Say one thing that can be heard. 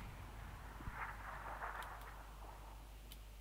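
A young man speaks quietly through a microphone.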